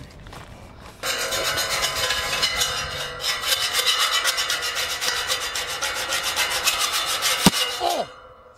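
Skateboard wheels clatter rapidly over metal bars.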